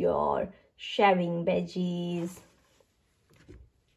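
A stiff board book closes with a soft thump.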